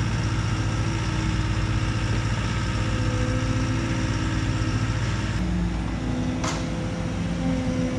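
A skid steer loader's diesel engine rumbles steadily nearby.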